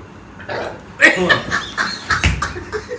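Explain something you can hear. Young men laugh together close by.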